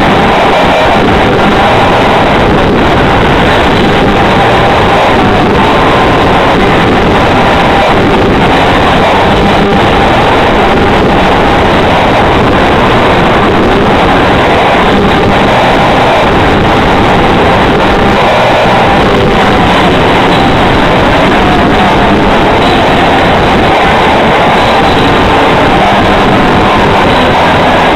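A drummer pounds the drums and crashes the cymbals.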